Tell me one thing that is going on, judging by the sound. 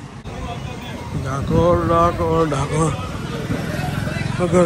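A crowd of people chatters in a busy street.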